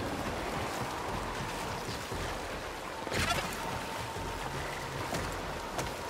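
Water rushes down a waterfall.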